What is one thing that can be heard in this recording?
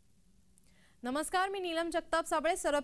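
A woman speaks clearly and briskly into a microphone, like a news presenter.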